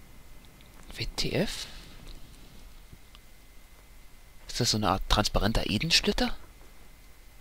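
An elderly woman speaks slowly and calmly, close by.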